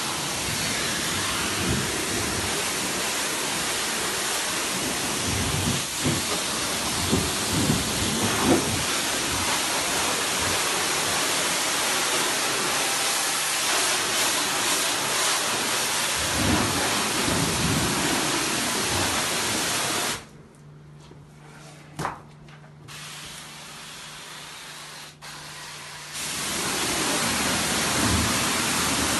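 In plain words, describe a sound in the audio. A pressure washer sprays water with a loud, steady hiss that stops for a few seconds and then starts again.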